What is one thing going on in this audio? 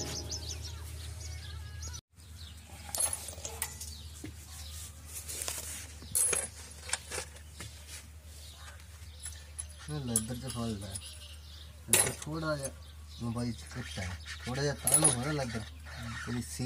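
Metal tools clink and tap against metal parts.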